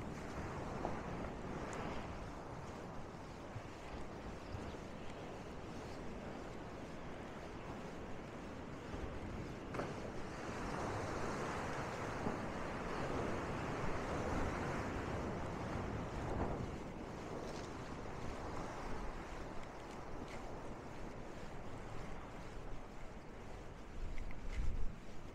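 Waves wash and break on the shore nearby.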